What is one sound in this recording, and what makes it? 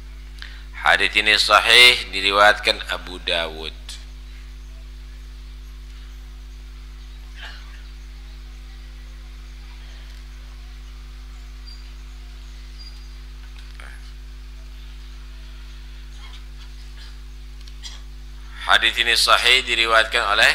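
A man sings in a melodic, drawn-out voice.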